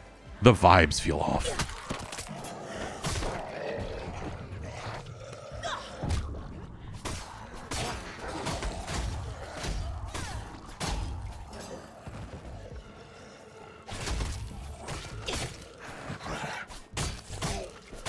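Heavy blows thud and smack against bodies.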